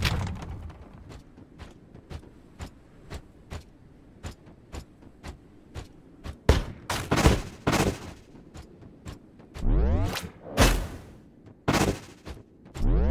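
Footsteps tap steadily on sand.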